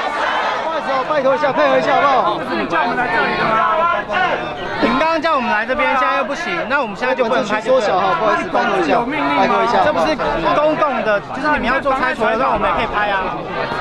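A man speaks loudly and firmly nearby.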